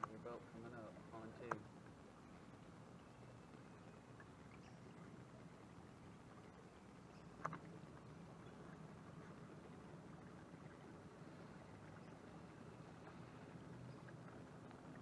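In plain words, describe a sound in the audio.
Water laps softly against the hull of a small boat gliding along.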